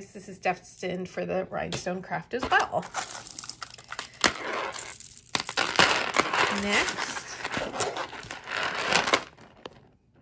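Glass beads clink and rattle against each other as they are handled.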